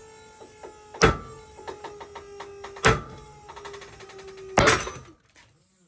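A tightly loaded rope slips in its knot with sharp, loud bangs.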